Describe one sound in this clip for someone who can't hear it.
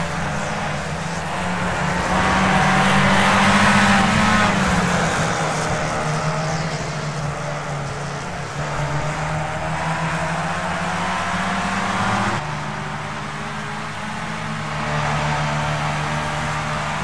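Racing car engines whine loudly, rising and falling in pitch as the cars shift gears.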